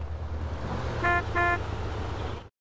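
A mobile phone rings with a short electronic tone.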